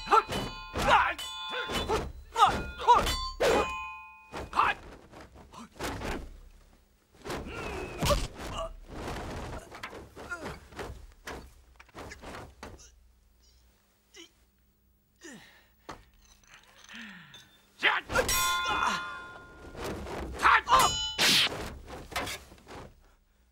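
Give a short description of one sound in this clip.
Swords clash with sharp metallic rings.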